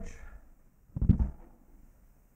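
A folding seat bangs up as a person stands.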